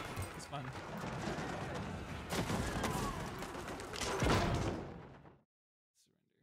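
Cannons boom and gunfire crackles in a battle.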